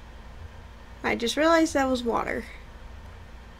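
A young woman speaks briefly and expressively into a nearby microphone.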